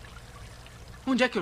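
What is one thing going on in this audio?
A young man exclaims loudly.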